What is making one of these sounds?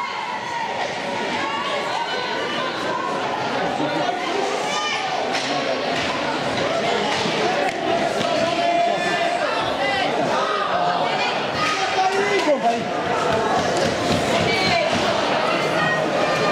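A crowd of spectators shouts and cheers in a large echoing arena.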